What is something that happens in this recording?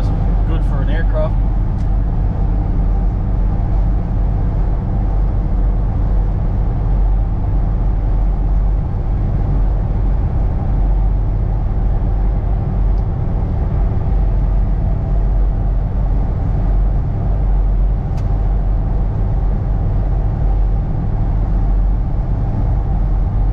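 A vehicle's engine drones steadily while driving.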